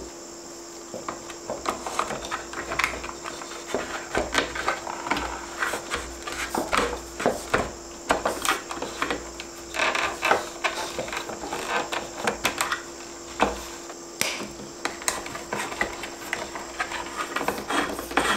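Electrical cable rustles and scrapes against a wall box as hands pull it through.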